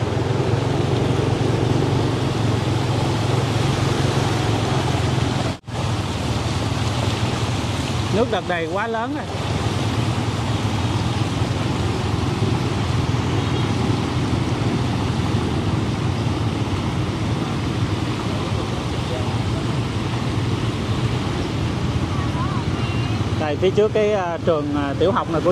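Water splashes and swishes under moving wheels.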